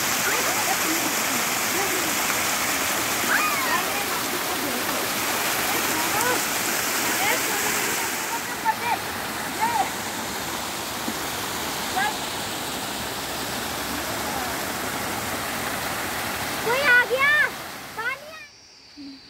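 Water rushes and splashes loudly down over rocks.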